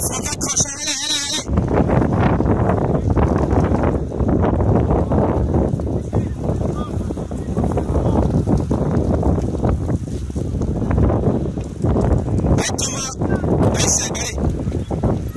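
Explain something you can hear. Mountain bike tyres roll past on a dirt track.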